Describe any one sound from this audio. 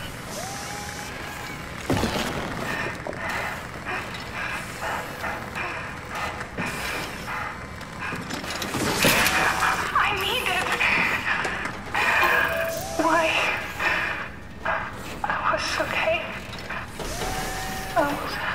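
A robotic machine whirs with rising and falling whines.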